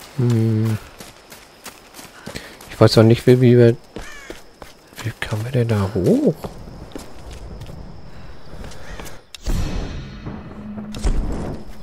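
Footsteps crunch on a forest floor.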